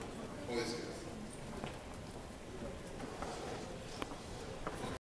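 Men talk quietly at a distance in a large echoing hall.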